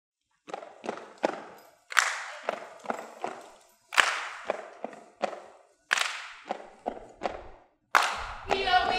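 Feet stomp on hard ground in a rhythm.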